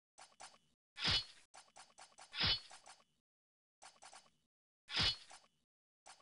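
A knife swishes through the air a few times.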